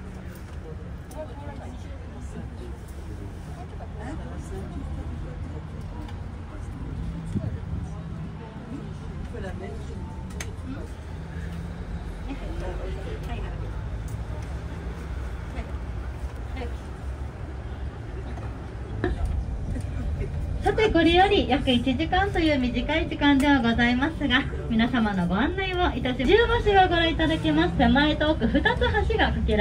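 A bus engine hums low and steadily.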